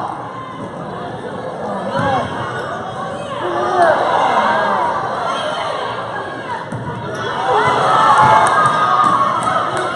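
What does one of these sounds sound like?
Spectators cheer and call out in a large echoing gym.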